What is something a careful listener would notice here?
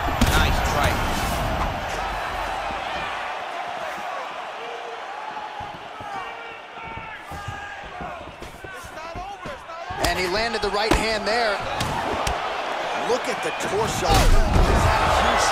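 Punches thud against a body.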